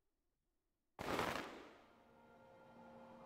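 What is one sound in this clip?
A burst of light flares with a sudden whoosh.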